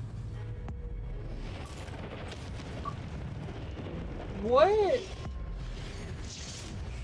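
A magic spell crackles and zaps in short bursts.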